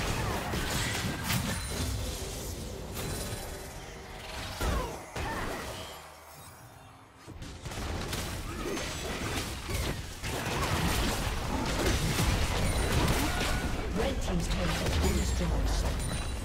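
Video game hits and blasts thud and clash.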